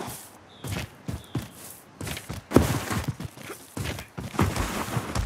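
Footsteps thud softly on grass.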